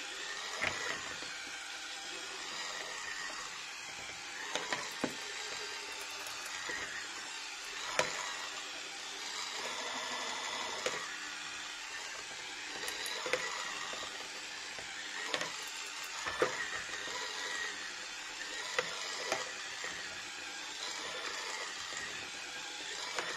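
Mixer beaters clatter against the sides of a bowl.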